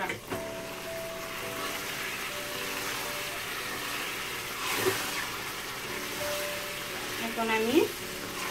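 Meat sizzles in hot oil.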